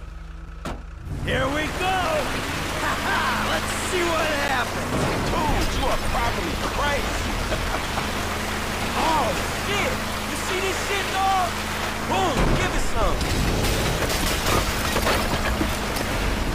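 A truck engine revs hard.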